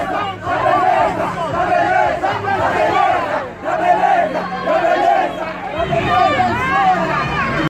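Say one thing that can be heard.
A crowd of people shouts and chants loudly outdoors close by.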